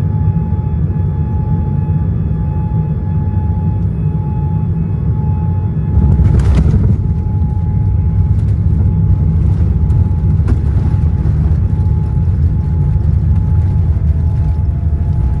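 Jet engines hum steadily, heard from inside an aircraft cabin.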